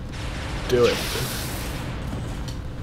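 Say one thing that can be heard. A laser rifle fires a burst with a hissing crackle.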